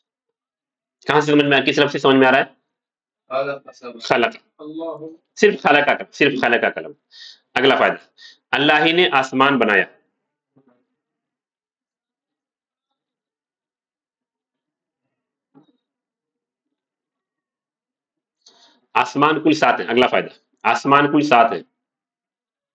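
A man speaks calmly and deliberately into a close microphone, with long pauses.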